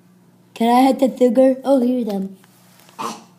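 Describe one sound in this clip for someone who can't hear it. A second young girl shouts playfully close by.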